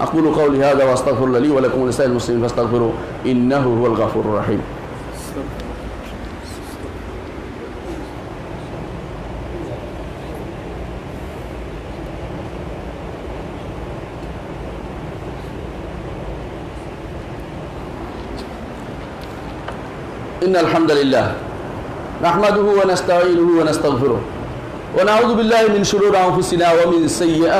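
A middle-aged man speaks steadily through a headset microphone.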